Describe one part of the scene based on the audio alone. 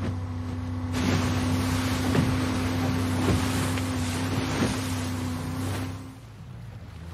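Water sprays and splashes behind a speeding boat.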